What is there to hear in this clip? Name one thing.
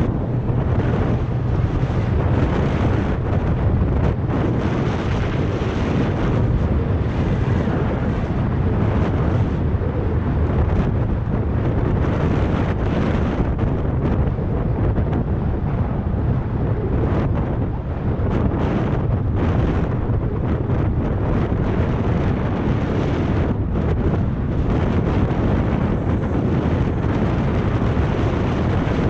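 Bicycle tyres roll over rough asphalt.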